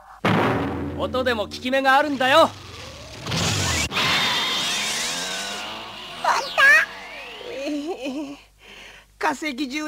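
A man laughs loudly and wildly.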